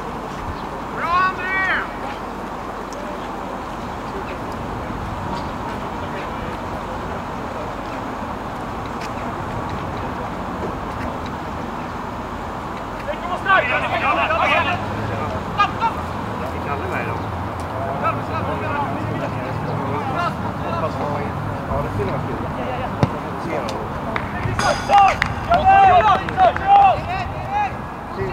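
Young players shout calls from afar across an open field outdoors.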